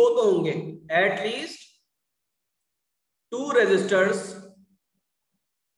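A man speaks calmly through a microphone, explaining with pauses.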